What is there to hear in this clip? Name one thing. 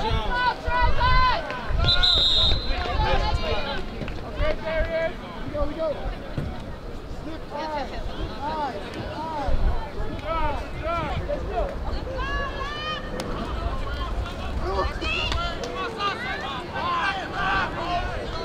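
Many young voices shout and cheer outdoors.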